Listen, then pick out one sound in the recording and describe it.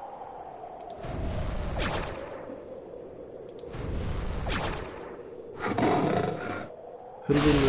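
Magic spells burst with a loud roaring whoosh, again and again.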